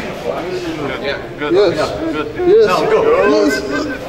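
A group of men laugh and shout up close.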